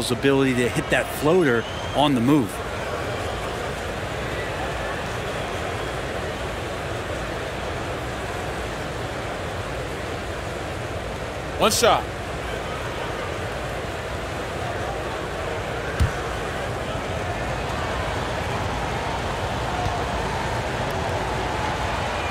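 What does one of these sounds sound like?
A large crowd murmurs steadily in a big echoing arena.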